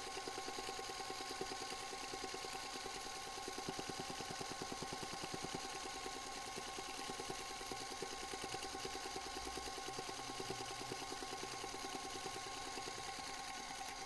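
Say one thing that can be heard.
A sewing machine stitches with a fast, steady whirring rattle.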